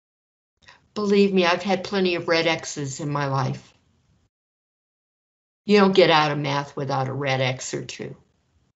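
An elderly woman speaks calmly and clearly into a microphone.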